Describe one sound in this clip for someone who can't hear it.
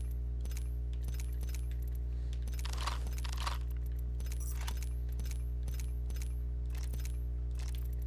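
Game menu clicks sound as items are scrolled and picked.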